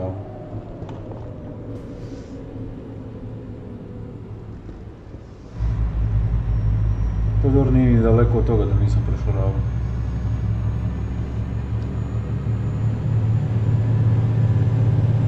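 A truck engine hums steadily, growing louder and deeper.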